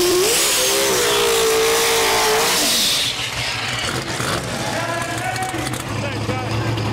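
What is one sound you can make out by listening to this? A race car engine roars loudly, then drops to a rumble.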